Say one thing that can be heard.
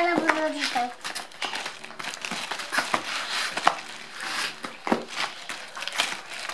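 A plastic bag crinkles and rustles as a hand rummages through it.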